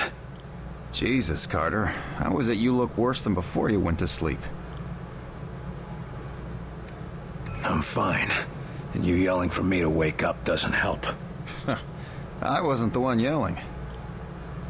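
A man speaks firmly and tensely.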